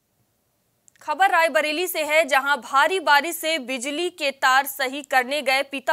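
A young woman reads out the news calmly into a microphone.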